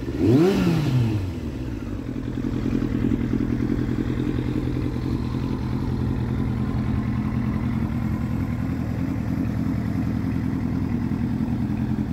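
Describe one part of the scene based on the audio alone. A motorcycle engine idles with a steady, low burble close by.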